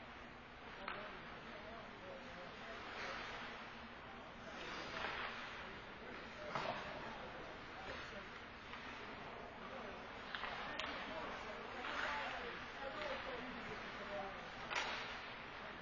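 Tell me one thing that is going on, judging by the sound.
Hockey sticks clack sharply against a puck.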